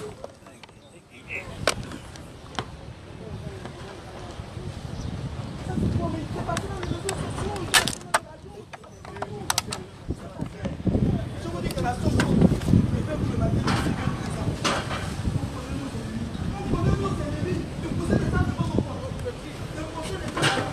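A crowd of men and women talks and shouts excitedly outdoors.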